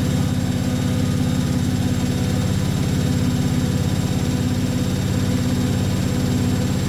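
Several washing machines spin fast with a loud, steady, throbbing hum and rumble.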